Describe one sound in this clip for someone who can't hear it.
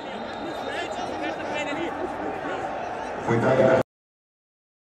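Men shout and argue at close range.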